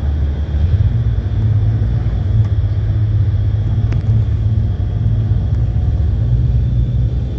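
Ocean waves wash onto a sandy shore in a steady roar.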